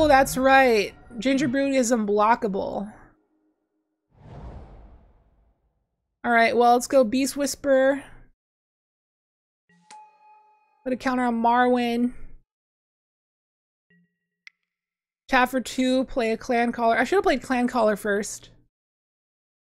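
A young woman talks calmly into a close microphone, in short bursts with pauses.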